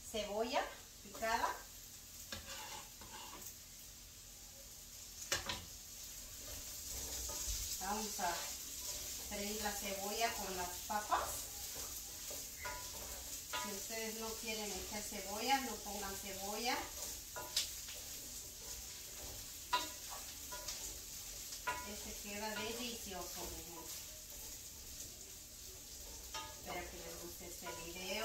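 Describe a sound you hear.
A spatula scrapes and clinks against a frying pan.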